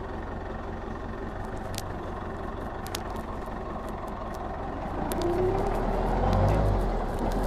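Metal parts of a forklift rattle and clank as it drives.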